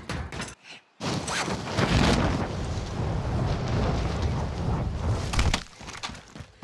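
Wind rushes loudly past during a fast descent.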